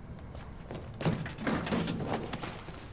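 Footsteps scuffle against a brick wall.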